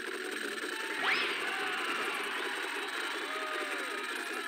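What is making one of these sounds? A sparkly chime rings out as a bonus is collected.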